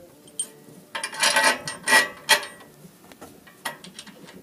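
A metal part clicks and scrapes as it is slid along a steel frame.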